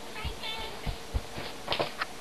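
Small bare feet patter on a floor.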